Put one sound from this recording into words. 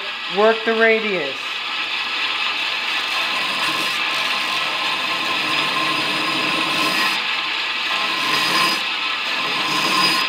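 A belt grinder whirs steadily.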